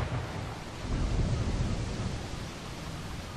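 Flames roar and flicker steadily.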